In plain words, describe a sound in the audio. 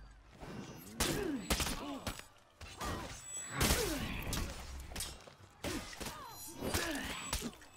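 Swords clash and clang in sharp metallic hits.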